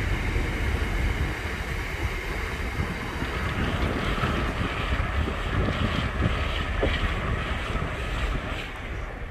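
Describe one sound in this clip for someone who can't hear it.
Wagon wheels clatter and squeal over rail joints.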